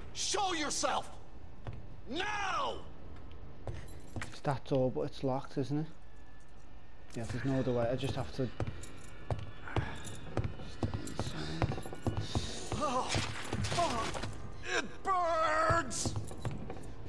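A man shouts angrily and groans close by.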